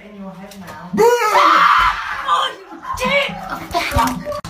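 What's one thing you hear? A young woman screams.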